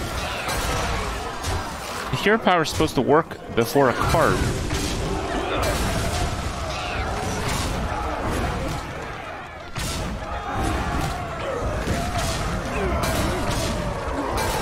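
Game effects crash and whoosh as cards attack.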